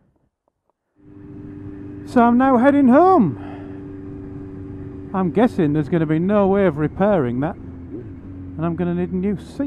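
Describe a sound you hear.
A motorcycle engine hums steadily as the bike rides along a road.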